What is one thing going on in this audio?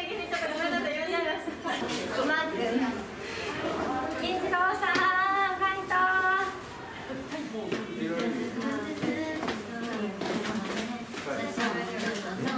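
Young women chatter and cheer excitedly close by.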